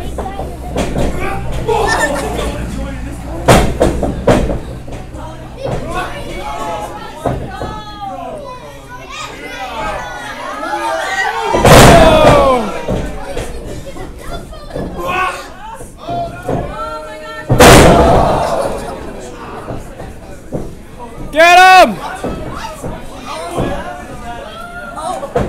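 A crowd chatters in an echoing hall.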